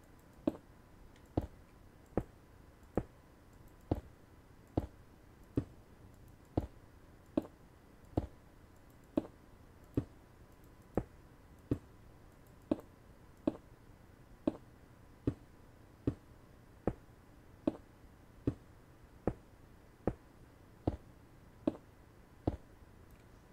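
Stone blocks are placed one after another with short dull thuds, in a steady rhythm.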